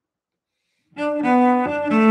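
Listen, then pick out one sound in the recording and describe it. A cello is bowed, playing a sustained melody.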